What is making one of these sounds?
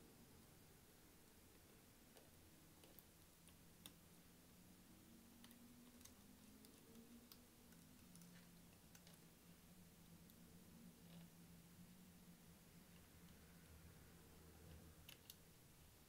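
A screwdriver clicks and ticks softly against small screws.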